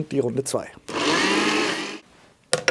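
A blender whirs loudly for a moment.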